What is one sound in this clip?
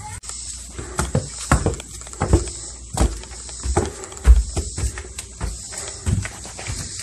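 Footsteps thump on carpeted stairs.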